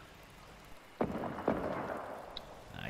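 A shotgun fires with loud, booming blasts.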